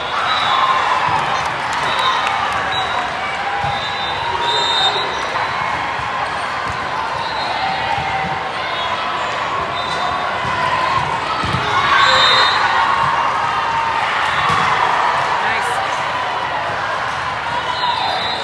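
A crowd chatters and cheers in a large echoing hall.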